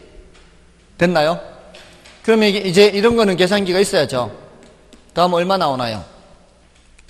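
A man speaks through a microphone in a calm, explaining voice, with pauses.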